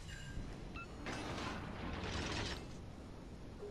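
Heavy naval guns boom in a salvo.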